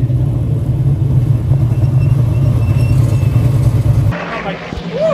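A race car engine idles with a deep, loud rumble.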